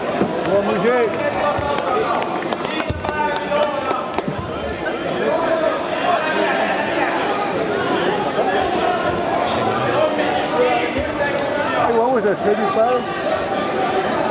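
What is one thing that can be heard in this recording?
A crowd of men and women talk and call out loudly in a large echoing hall.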